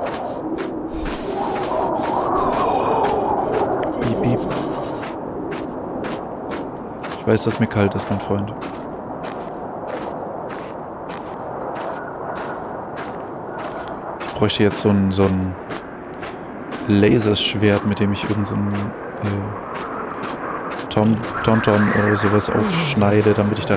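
A snowstorm wind howls steadily.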